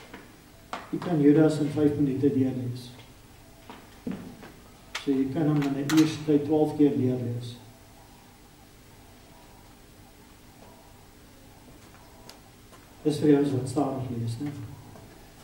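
An elderly man preaches with emphasis into a microphone, pausing between phrases.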